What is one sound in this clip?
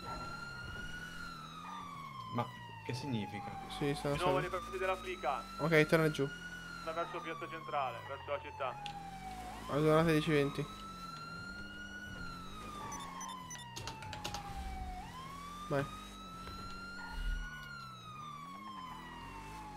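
A police siren wails steadily, rising and falling slowly.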